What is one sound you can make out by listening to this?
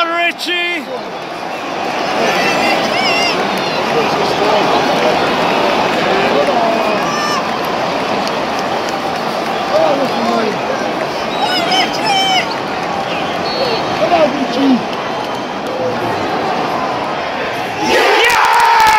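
A large stadium crowd murmurs and chants.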